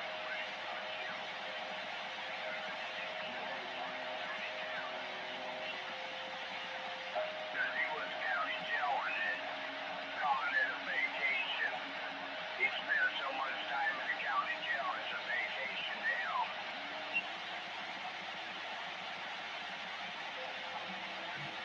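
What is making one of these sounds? A radio loudspeaker hisses with steady static.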